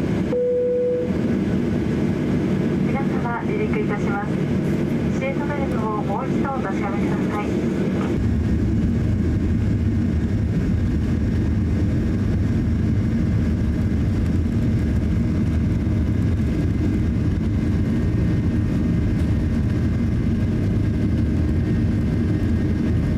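A jet engine rumbles steadily and grows louder partway through.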